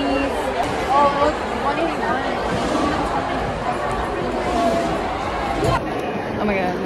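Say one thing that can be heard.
A large crowd chatters in an echoing hall.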